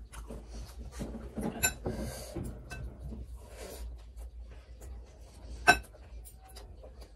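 Fingers squish and mix rice close up.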